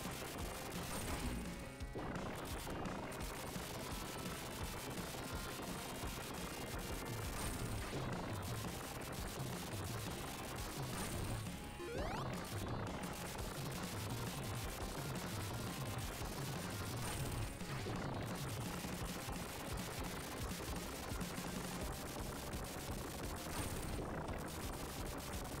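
Short electronic sound effects chirp and blip.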